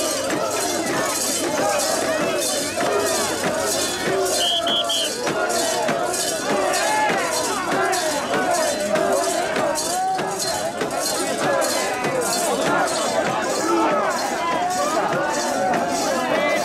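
A large outdoor crowd of men chants loudly in rhythm.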